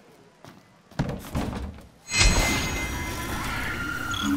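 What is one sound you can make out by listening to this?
A metal crate lid clanks and rattles as items are rummaged through.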